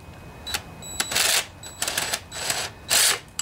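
A cordless impact driver whirs and rattles in short bursts.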